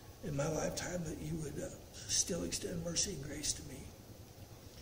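An older man speaks calmly and solemnly into a microphone.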